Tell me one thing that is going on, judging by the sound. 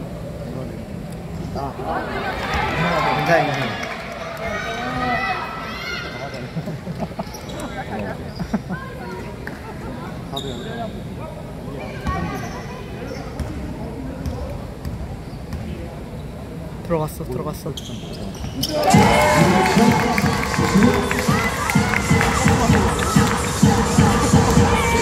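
A large crowd cheers and chants in an echoing indoor arena.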